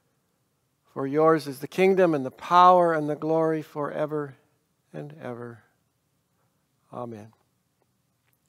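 An older man speaks calmly and clearly into a microphone, close by.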